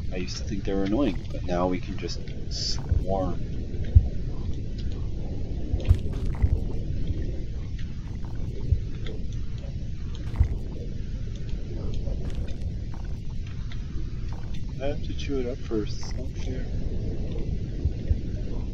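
A deep underwater rumble drones steadily.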